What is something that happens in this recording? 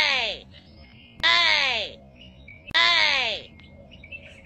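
A young monkey gives short, high, falling squeals close by.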